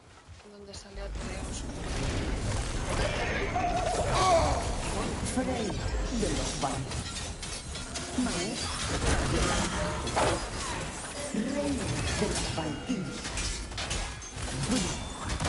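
A heavy axe strikes and slashes with loud impacts.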